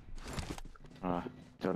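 A young man speaks briefly and calmly into a close microphone.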